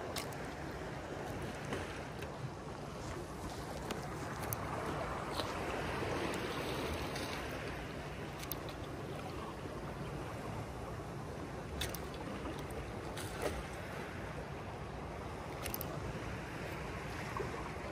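Water laps gently against stones.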